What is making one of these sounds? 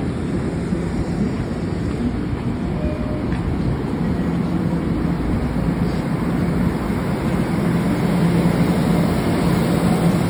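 A train rumbles steadily close by.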